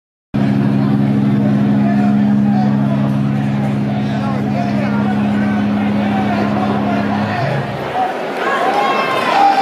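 A crowd chatters and talks loudly in an echoing room.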